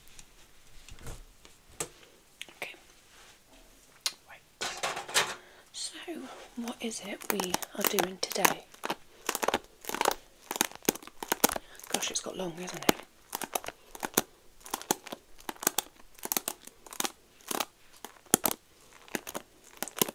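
Hands rub and tap against a microphone, making loud scratchy knocks.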